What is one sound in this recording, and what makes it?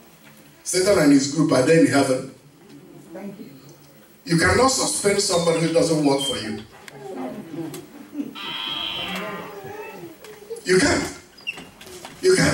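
A man preaches with emphasis into a microphone over loudspeakers in an echoing hall.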